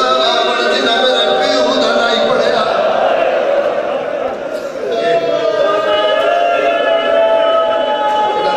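A man sings a mournful chant loudly into a microphone, echoing slightly.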